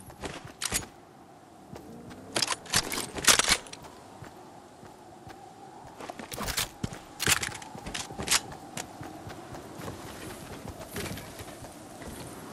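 Short clicks and chimes sound as items are picked up.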